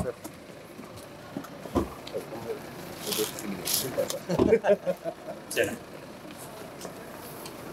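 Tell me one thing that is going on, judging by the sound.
Several men talk and greet each other nearby.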